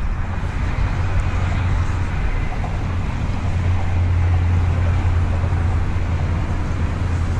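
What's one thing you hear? Wind rumbles steadily across open water.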